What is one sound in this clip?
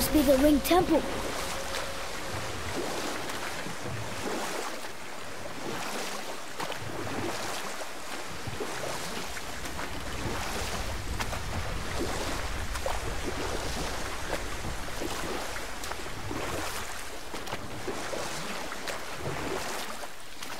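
Oars splash rhythmically in the water.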